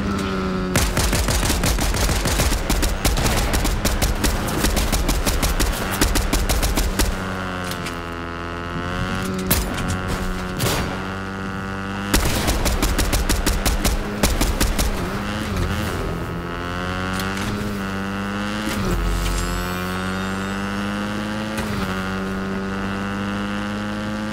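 A motorbike engine revs and hums steadily, rising and falling in pitch.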